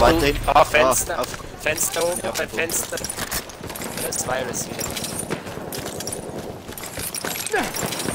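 A rifle fires single loud shots.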